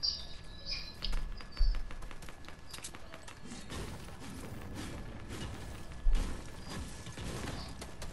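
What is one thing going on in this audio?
Building pieces snap into place with quick knocks and clicks.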